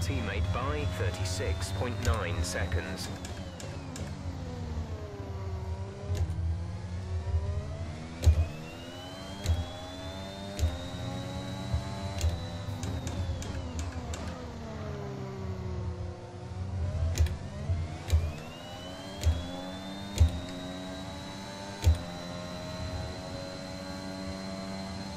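A racing car engine screams, rising and falling in pitch as it shifts through the gears.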